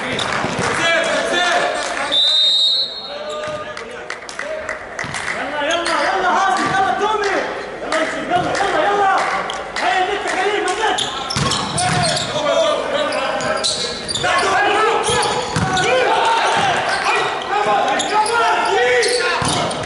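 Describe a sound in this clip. A volleyball is hit hard with sharp smacks in a large echoing hall.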